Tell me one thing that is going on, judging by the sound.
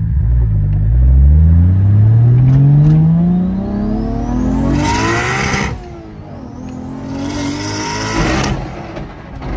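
A car engine revs up repeatedly as the car speeds up through the gears.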